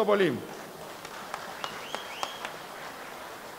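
A man claps his hands a few times.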